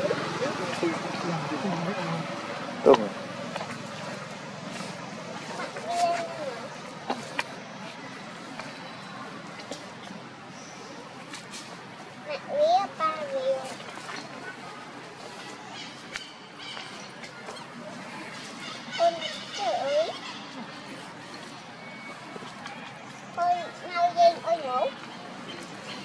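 A baby monkey squeals in short, high cries now and then.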